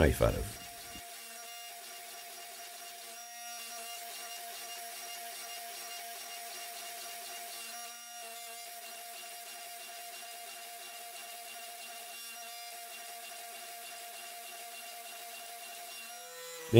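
A power press hums as it squeezes hot metal.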